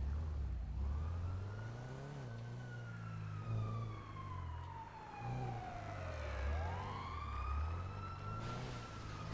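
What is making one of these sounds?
Car tyres screech on paving.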